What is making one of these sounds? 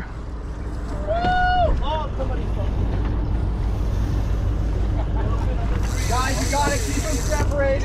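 Boat engines rumble steadily at idle.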